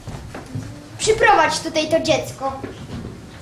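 A young boy speaks clearly.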